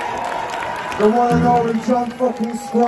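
A male singer sings through loud speakers.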